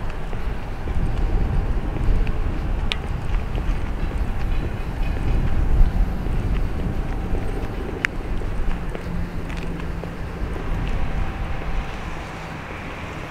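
Wind blusters outdoors against the microphone.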